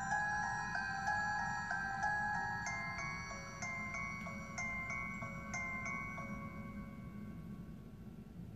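Chiming game music plays from a small handheld speaker and fades away.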